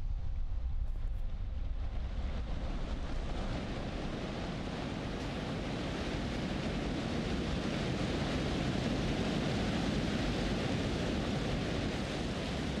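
Wind blows steadily outdoors and grows stronger.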